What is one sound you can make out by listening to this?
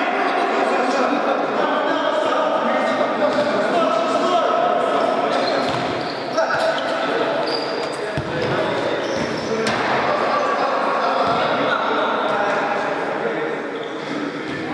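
Sneakers squeak on a hard indoor floor.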